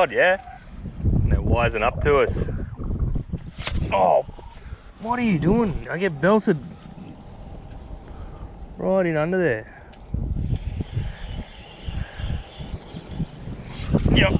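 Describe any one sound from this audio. A fishing reel rattles and clicks as hands handle it.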